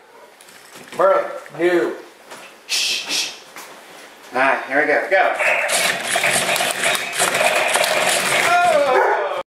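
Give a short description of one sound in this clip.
A toy robot plays short electronic sound effects.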